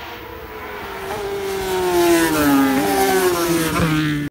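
A lone motorcycle engine roars past, its pitch dropping as it goes by.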